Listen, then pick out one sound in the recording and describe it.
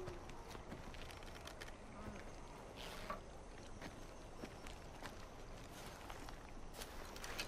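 Footsteps rustle and crunch through dry grass and brush.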